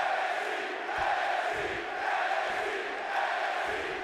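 A body slams heavily onto the wrestling ring mat.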